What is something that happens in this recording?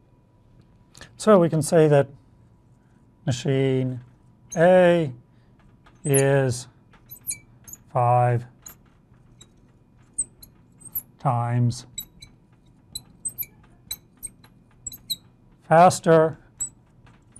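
A man speaks calmly and slowly, as if explaining, close to a microphone.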